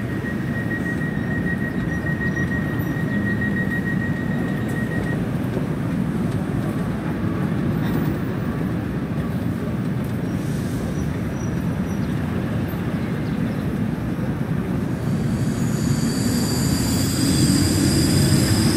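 A train's engine hums steadily.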